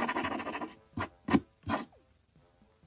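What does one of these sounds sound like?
A pencil taps sharply on paper.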